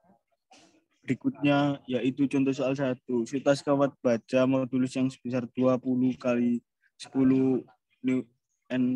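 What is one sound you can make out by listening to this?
A young man speaks calmly, close to a microphone, as if through an online call.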